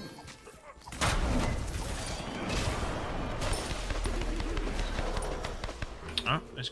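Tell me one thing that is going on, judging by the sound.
Video game spell effects burst and crackle during a fight.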